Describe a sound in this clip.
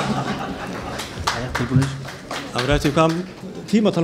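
An audience laughs loudly in a hall.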